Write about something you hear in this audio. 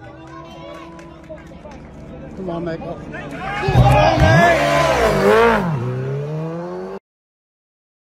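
A racing motorcycle engine revs loudly as the bike speeds past close by.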